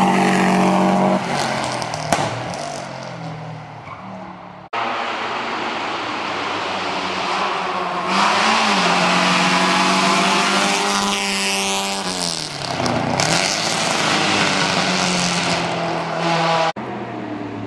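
A racing car engine roars and revs hard, rising and falling in pitch as it climbs.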